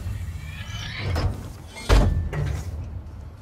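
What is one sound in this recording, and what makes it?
A metal hatch handle turns with a clunk.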